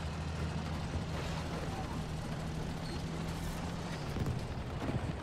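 A tank engine rumbles steadily as it drives.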